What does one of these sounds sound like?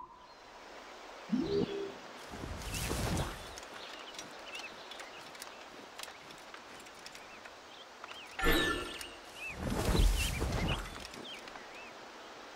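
Footsteps rustle through tall grass and ferns.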